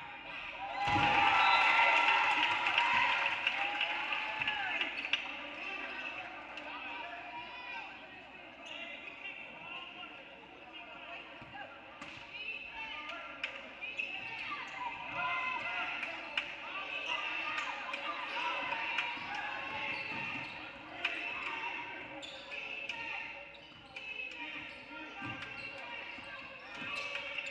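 Spectators chatter and call out in an echoing hall.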